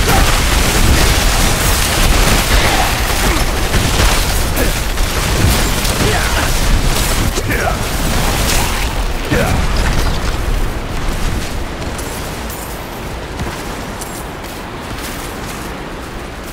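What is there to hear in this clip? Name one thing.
Ice spells crackle and shatter in rapid bursts.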